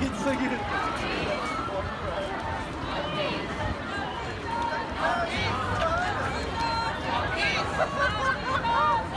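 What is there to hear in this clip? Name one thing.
A crowd of marchers talks and chatters all around outdoors.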